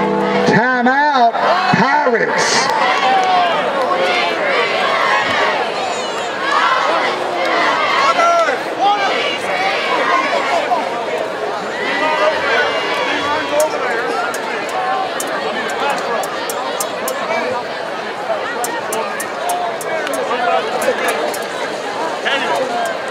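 A crowd of spectators chatters nearby, outdoors.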